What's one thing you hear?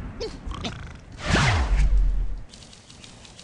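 A bird launches from a slingshot with a whoosh.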